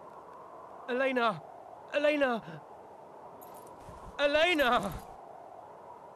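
A young man shouts a name loudly several times.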